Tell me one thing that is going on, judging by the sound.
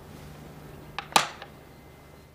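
A wooden game piece clicks onto a board.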